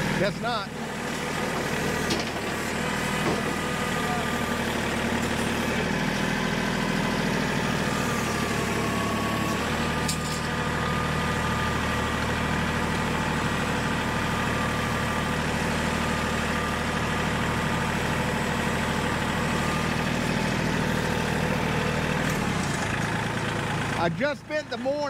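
A tractor engine rumbles steadily nearby outdoors.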